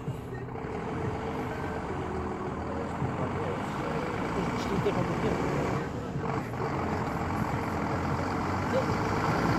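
A truck engine idles nearby with a steady low rumble.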